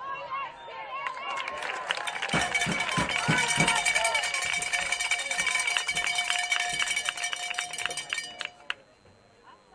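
A crowd cheers and claps loudly, then stops.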